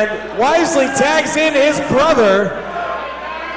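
Spectators whistle loudly and shrilly.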